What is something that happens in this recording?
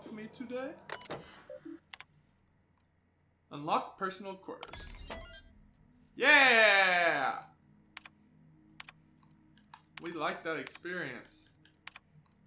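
Short clicks sound as menu options are selected on a terminal.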